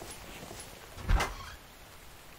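A wooden door knocks into place.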